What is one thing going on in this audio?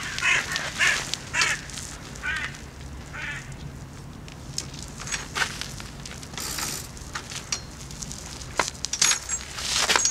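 A bicycle's gears and chain click and rattle up close.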